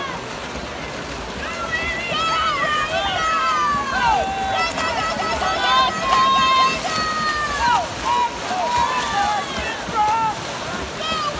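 Swimmers splash steadily through the water.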